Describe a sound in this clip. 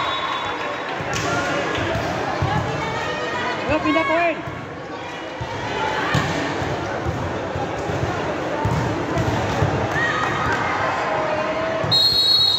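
A volleyball thumps off players' arms and hands.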